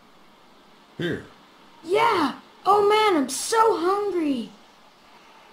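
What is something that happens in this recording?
A boy speaks with animation, close by.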